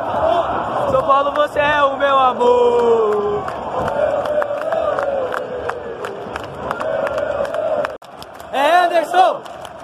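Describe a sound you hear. A man nearby shouts and sings loudly close by.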